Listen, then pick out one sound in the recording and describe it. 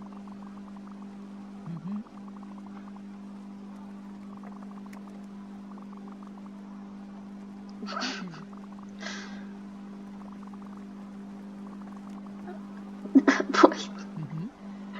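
Rapid soft electronic blips patter along in quick bursts.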